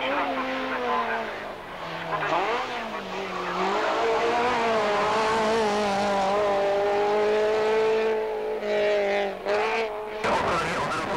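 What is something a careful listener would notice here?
A rally car engine revs hard and rises in pitch between gear changes.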